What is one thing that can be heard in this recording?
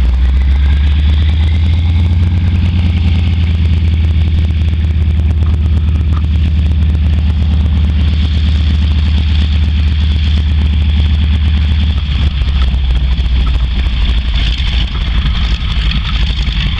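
A propeller plane's engine roars loudly and steadily close by.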